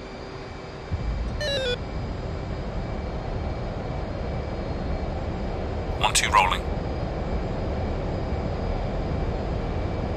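A jet engine rumbles and builds steadily.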